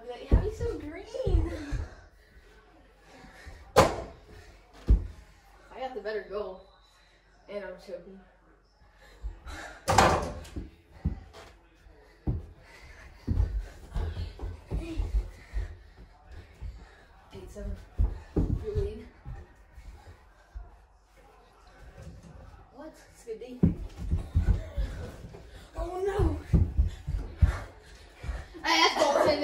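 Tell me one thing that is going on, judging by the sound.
Feet thud and shuffle on a carpeted floor.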